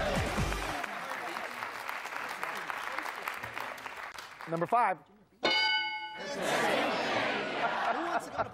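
An audience applauds and cheers.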